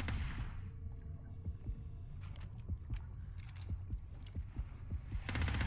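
Heavy footsteps thud steadily underfoot.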